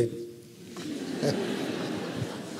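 An elderly man laughs into a microphone.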